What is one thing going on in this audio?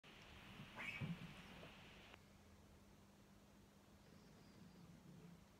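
An electric guitar is strummed, a bright chord ringing out and fading.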